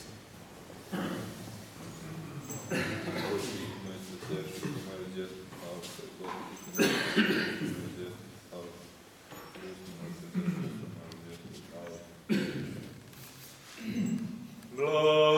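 A man chants in a deep voice, echoing in a large hall.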